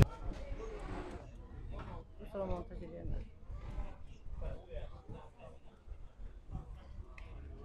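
Several men talk at once outdoors, some voices raised.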